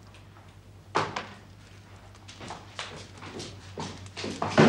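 A sheet of paper rustles.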